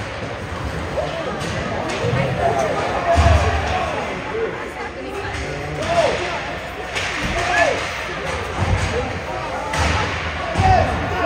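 Young players shout to each other across the ice.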